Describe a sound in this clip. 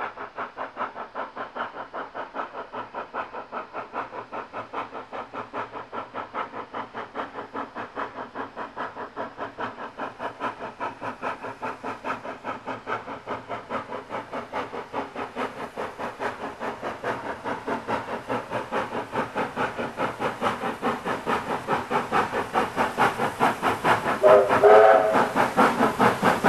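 A steam locomotive chuffs in a fast, steady rhythm, growing louder as it approaches.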